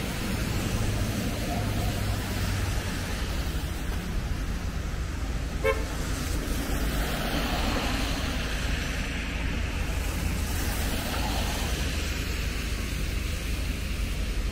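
Car tyres hiss along a wet road as vehicles pass by.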